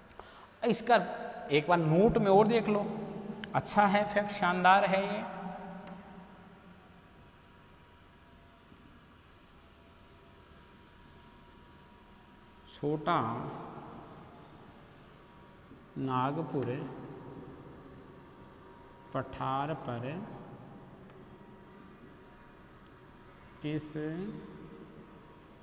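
A man speaks in short bursts, explaining calmly with long pauses.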